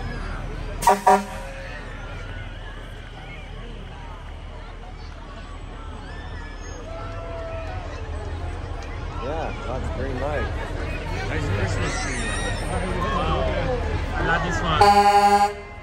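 A crowd of people chatter and cheer outdoors.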